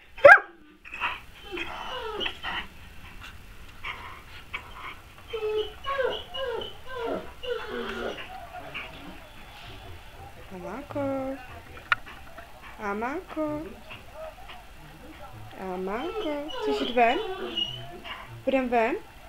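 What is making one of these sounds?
A dog howls and whines in long, wavering tones close by.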